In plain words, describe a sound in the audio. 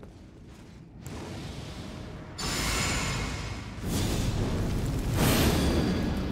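A magical whooshing roar swells and grows louder.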